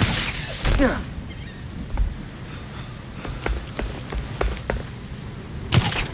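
Footsteps clank on a metal rooftop.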